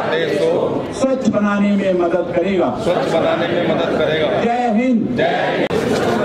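A man speaks loudly through a microphone over a loudspeaker.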